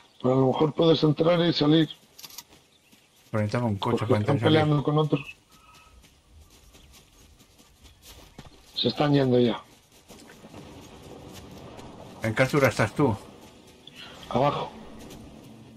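Footsteps patter quickly on grass and ground.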